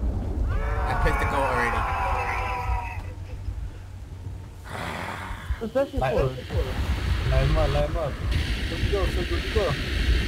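A fire crackles and hisses.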